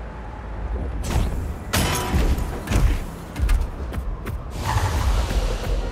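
Heavy feet thud onto the ground.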